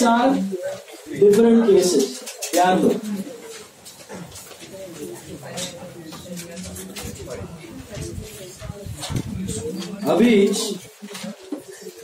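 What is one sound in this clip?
A man speaks calmly into a clip-on microphone, close by.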